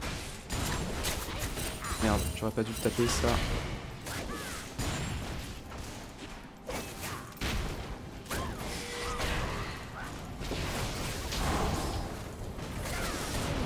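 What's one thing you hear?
Game spell effects burst and crackle in quick succession.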